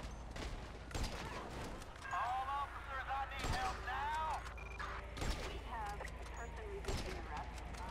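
Rifle shots ring out one at a time.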